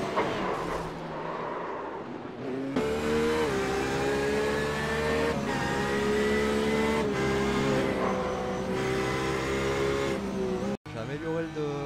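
A prototype race car engine screams at full throttle.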